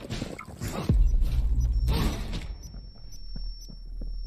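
Electricity crackles and zaps loudly.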